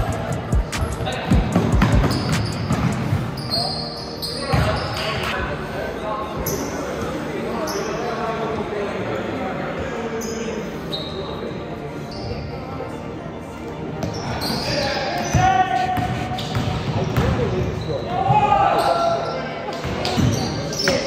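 Players' footsteps thud on a court in a large echoing gym.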